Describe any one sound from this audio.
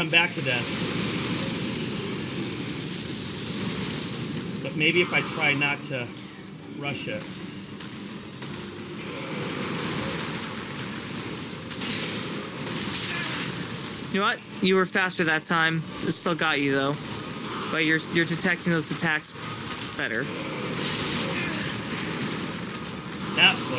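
A second man talks over an online call.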